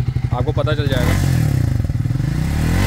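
A motorcycle engine revs up sharply.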